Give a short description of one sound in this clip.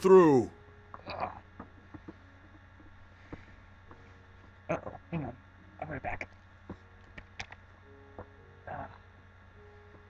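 Pigs grunt and squeal in a video game.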